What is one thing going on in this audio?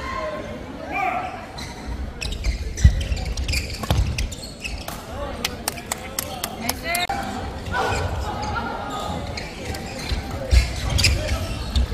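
Young players call out and shout during play.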